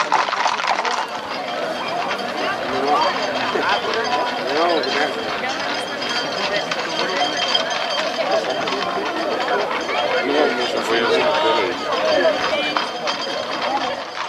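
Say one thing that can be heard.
A crowd of people shouts and chatters outdoors.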